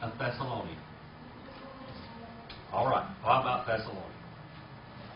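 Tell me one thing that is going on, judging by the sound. A middle-aged man speaks slowly and deliberately, with long pauses.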